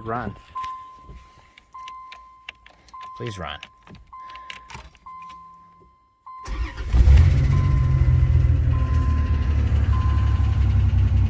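A car's warning chime beeps at a steady pace.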